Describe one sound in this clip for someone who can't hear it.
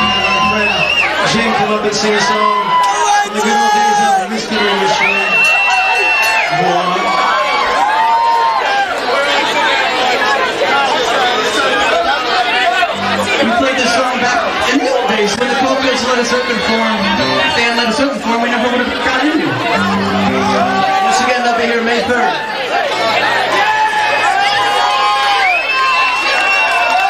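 Electric guitars play distorted chords.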